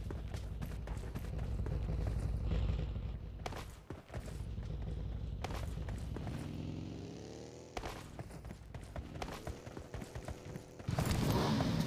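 Footsteps run quickly over rocky ground.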